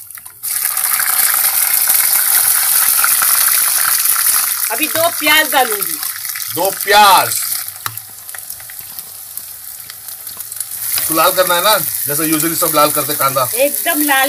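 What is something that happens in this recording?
Oil sizzles loudly in a hot pan.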